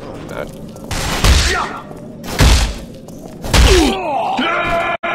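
Loud gunshots boom several times.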